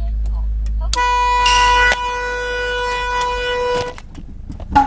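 A car horn blares loudly and steadily, then stops.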